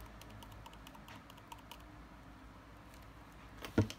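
Glitter pours and patters into a plastic cup.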